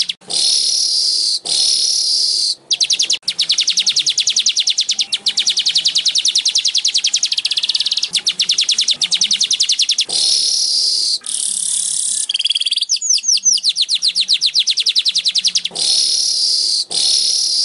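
A small bird sings loud, rapid, buzzing trills and chatters close by.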